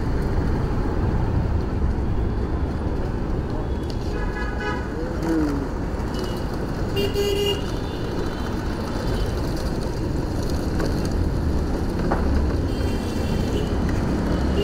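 Wind rushes and rumbles loudly past a moving motor scooter.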